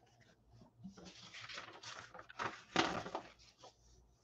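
A plastic wrapper crinkles on a pack of trading cards.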